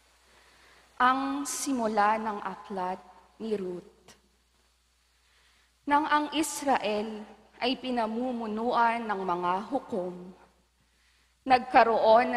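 A young woman reads aloud calmly through a microphone in an echoing hall.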